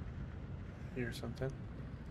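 A man speaks briefly and calmly into a close microphone.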